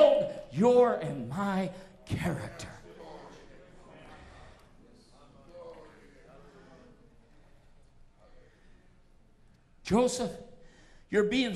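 An elderly man preaches loudly through a microphone, shouting at times and then speaking softly.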